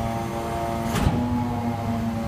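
A metal compactor blade clunks once.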